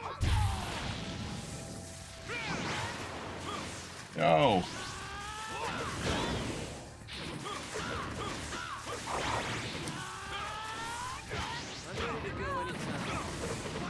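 Game fighters clash with whooshing blasts and hits.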